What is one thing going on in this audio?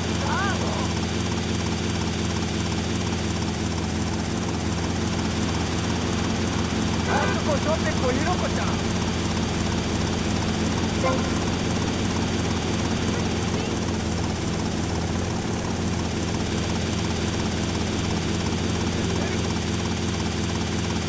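A helicopter's rotor whirs and drones steadily overhead.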